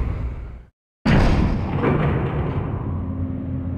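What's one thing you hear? An elevator rumbles and hums as it moves.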